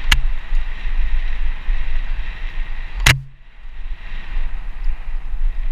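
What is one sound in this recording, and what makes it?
Wind rushes and buffets loudly.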